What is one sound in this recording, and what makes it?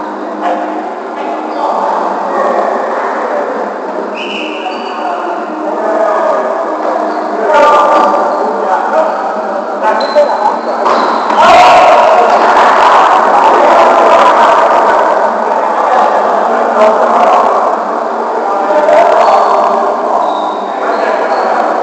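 Men shout and call out to each other across a large echoing gym.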